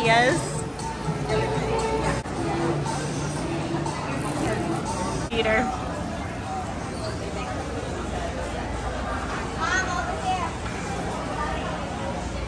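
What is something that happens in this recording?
Adults chatter in the background.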